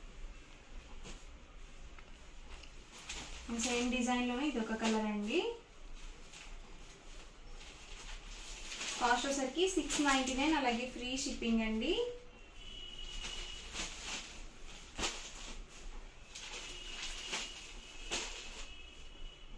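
Cloth rustles and swishes as fabric is handled and laid down.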